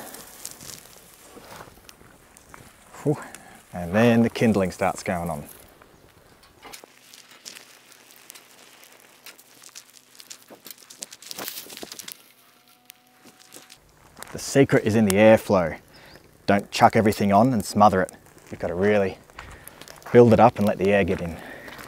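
A small fire crackles and pops softly.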